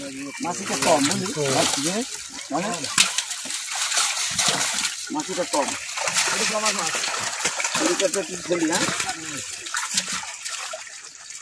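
Water splashes in a pot.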